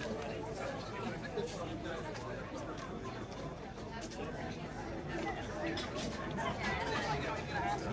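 A crowd of people chatter outdoors nearby.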